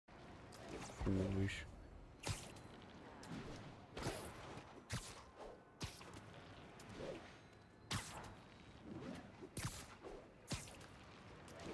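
Wind rushes past in swooping gusts.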